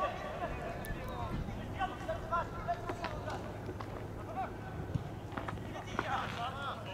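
Young men shout to each other in the distance across an open field.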